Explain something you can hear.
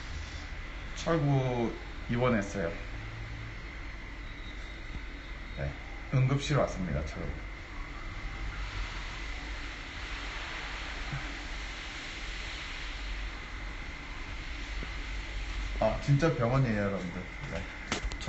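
A young man speaks casually and close to the microphone, in short bursts with pauses.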